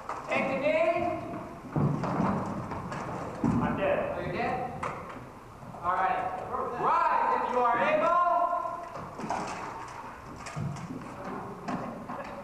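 Men shout and call out loudly in a large echoing hall.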